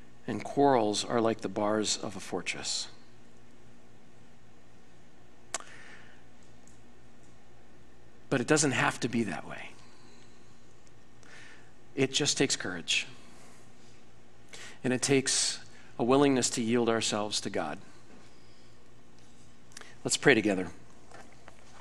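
A man speaks calmly through a microphone in a large hall, with pauses between phrases.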